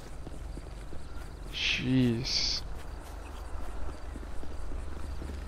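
Footsteps crunch over dirt and then tap on pavement.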